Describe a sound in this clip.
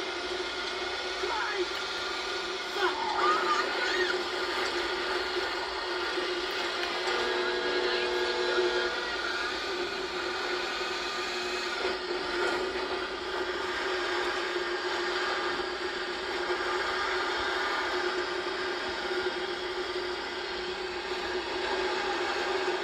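A truck engine drones steadily as the truck drives along.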